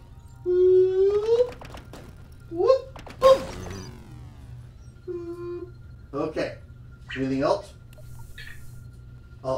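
A man speaks and exclaims with animation close to a microphone.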